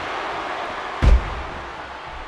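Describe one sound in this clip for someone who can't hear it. A wrestler's body slams hard onto the ring mat.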